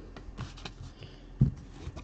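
Trading cards rustle and slide against each other.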